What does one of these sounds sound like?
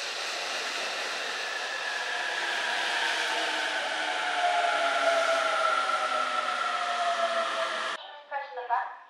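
A train's brakes squeal with a falling whine as it slows.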